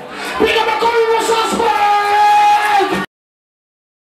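A young man sings loudly into a microphone through loudspeakers.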